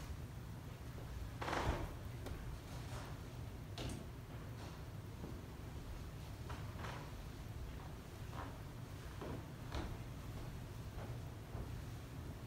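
Footsteps shuffle softly.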